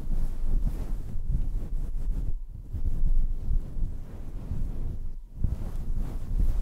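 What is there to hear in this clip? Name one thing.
Fingers rub and scratch a fluffy microphone cover up close, with deep rumbling rustles.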